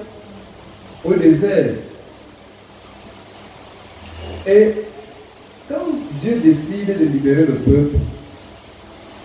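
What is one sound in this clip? A middle-aged man speaks with emphasis into a microphone, heard through a loudspeaker, pausing between phrases.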